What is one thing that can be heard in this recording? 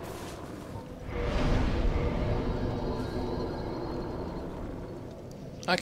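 A fire flares up with a low whooshing roar and slowly dies down.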